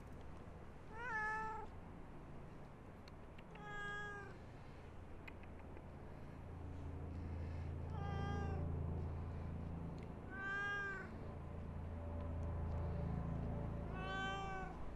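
A cat meows several times close by.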